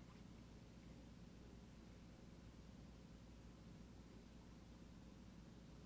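A paintbrush softly scrubs paint on a palette.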